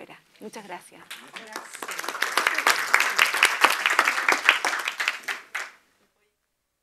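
An audience applauds in a room.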